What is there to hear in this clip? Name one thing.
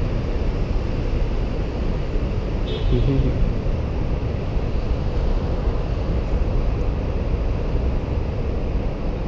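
Traffic rumbles steadily on a nearby road.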